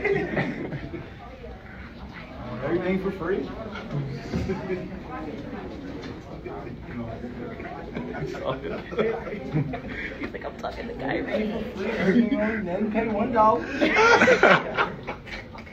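A man talks casually close to a phone microphone.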